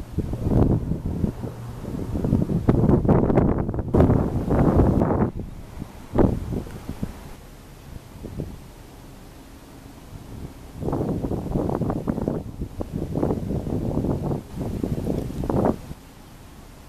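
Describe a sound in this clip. Wind gusts buffet outdoors in bursts.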